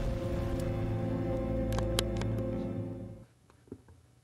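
A fire roars with a deep, rumbling blast.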